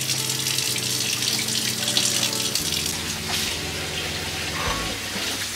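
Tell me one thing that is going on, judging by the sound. Water runs steadily from a tap into a metal sink.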